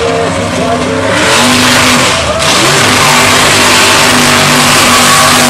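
A heavy truck crunches over wrecked cars.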